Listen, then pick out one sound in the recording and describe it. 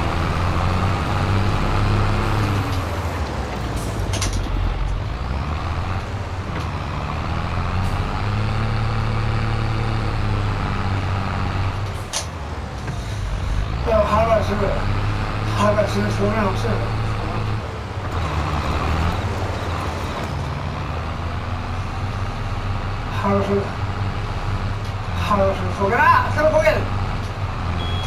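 A tractor engine rumbles steadily and rises and falls in pitch.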